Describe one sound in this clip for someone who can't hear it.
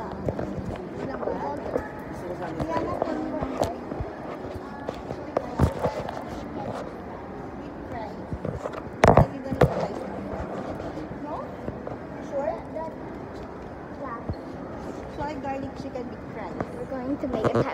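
A girl talks close to the microphone.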